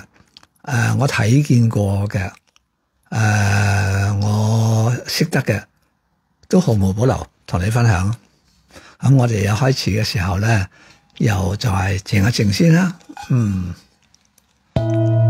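An elderly man speaks calmly and warmly, close by.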